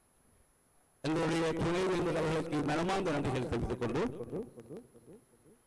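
A man announces loudly over an outdoor loudspeaker.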